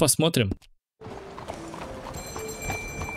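A horse's hooves clop slowly on a muddy street.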